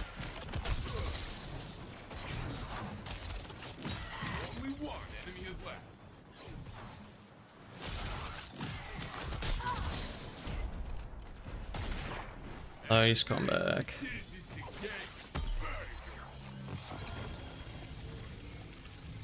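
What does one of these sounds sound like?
Energy blasts whoosh and crackle.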